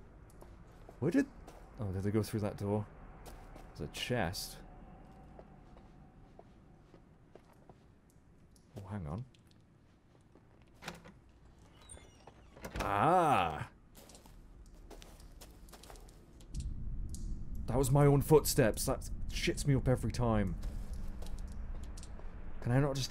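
A young man talks calmly into a close microphone, in short bursts.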